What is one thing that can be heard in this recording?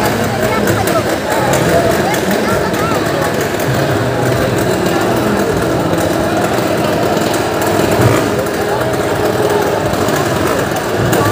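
Motorcycle engines rumble and rev inside a large echoing wooden drum.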